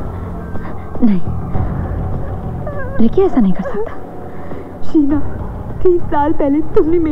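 A young woman speaks nearby in a strained, upset voice.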